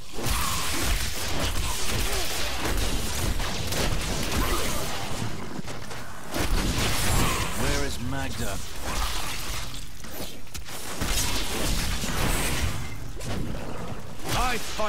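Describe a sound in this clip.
Monsters shriek and grunt as they are struck.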